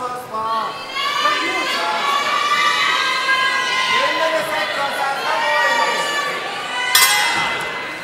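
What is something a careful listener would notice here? A crowd cheers and shouts loudly in a large arena.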